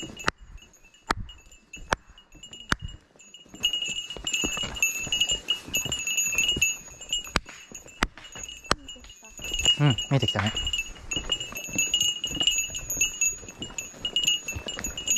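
Footsteps crunch along a dirt path.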